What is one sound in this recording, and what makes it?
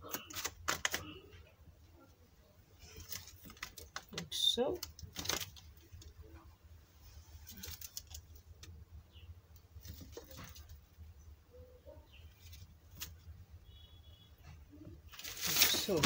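A thin plastic sheet crinkles softly as it is handled.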